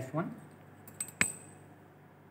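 Glass clinks once against glass.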